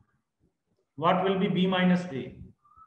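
A man speaks clearly into a close microphone.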